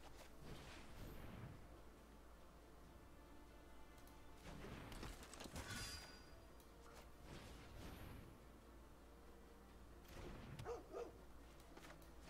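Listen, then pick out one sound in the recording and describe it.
Game sound effects whoosh and chime.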